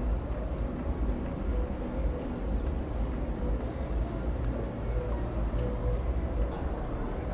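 Water churns and splashes at a ship's stern.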